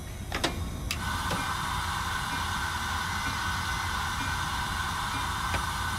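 Air hisses steadily from train brakes.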